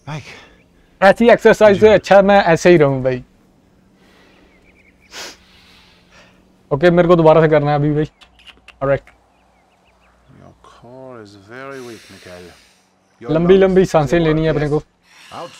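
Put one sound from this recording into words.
A man talks calmly and clearly, close by.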